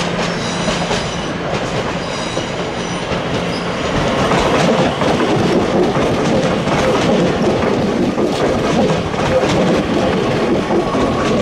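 A train engine hums as it approaches.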